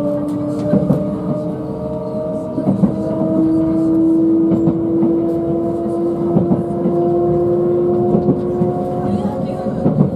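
A train rumbles steadily along the tracks, with a low motor hum.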